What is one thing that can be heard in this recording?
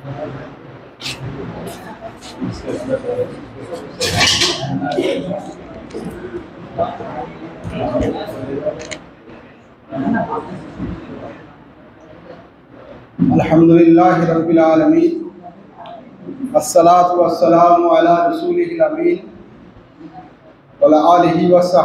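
An elderly man speaks steadily into a microphone, heard through loudspeakers.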